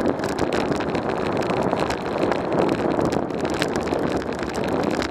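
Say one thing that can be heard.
Tyres roll steadily over a rough paved road.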